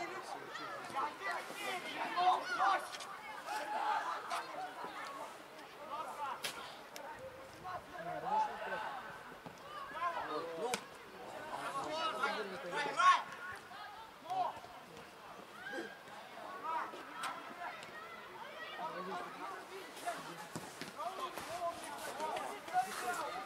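Players shout to each other across an open field outdoors.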